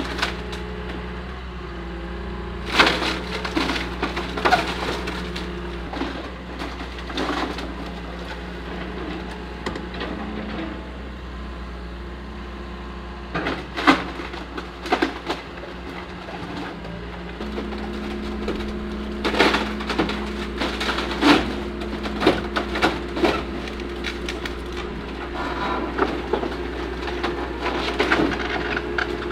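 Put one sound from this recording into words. An excavator's diesel engine runs under load.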